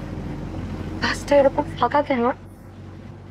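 A young woman answers nearby.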